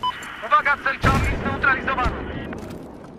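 A rifle fires a loud, booming shot.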